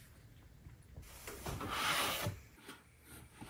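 Rolled leather rustles and scrapes as a hand pulls at it.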